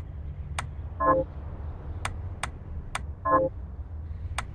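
Short electronic blips chime as a game menu opens and closes.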